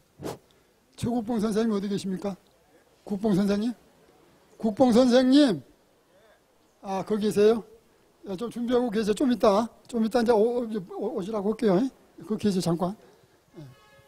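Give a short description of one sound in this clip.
A man chants in a loud, drawn-out voice, in short phrases with pauses between them.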